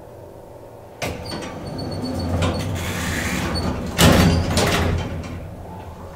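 Elevator doors slide open with a rumble.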